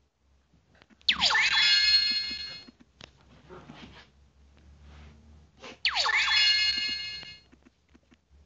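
Bright electronic chimes ring out twice.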